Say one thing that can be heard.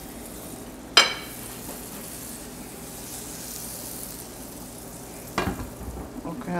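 A pan knocks against a stovetop.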